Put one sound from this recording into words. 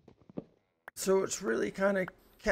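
A man speaks with animation, close to a headset microphone.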